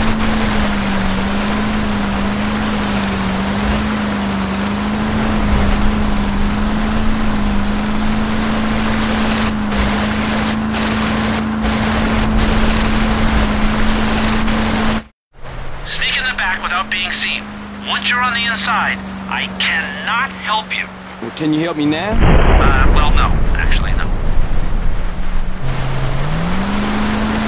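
A motorboat engine drones steadily.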